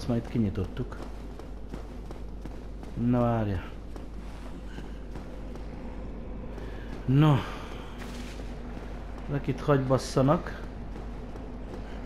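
Footsteps run over stone.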